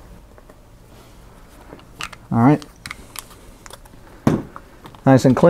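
Small plastic parts click and tap on a desk.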